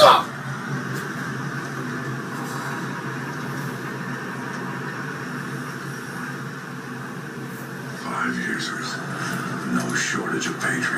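Video game sounds play from a tablet's small speaker.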